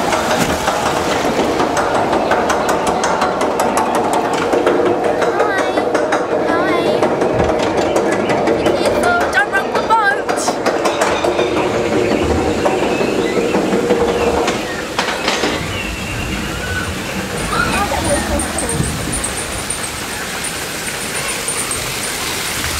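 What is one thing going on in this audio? Water rushes and splashes along a flume close by.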